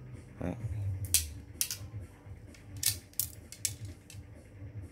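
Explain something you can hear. Fishing rods click and knock against each other.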